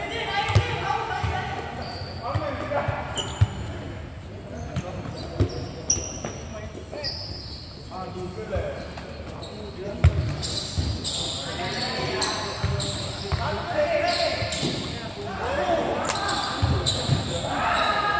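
A ball thuds as it is kicked on a hard court.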